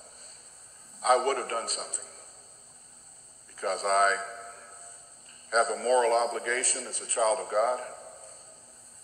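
An elderly man speaks slowly and earnestly through a microphone in a large room.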